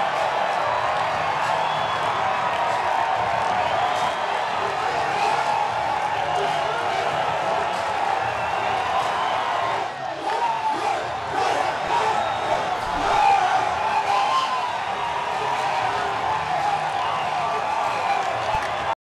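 A large stadium crowd cheers and roars loudly throughout.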